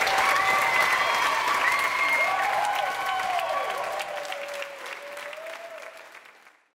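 A large crowd applauds in an echoing hall, slowly fading away.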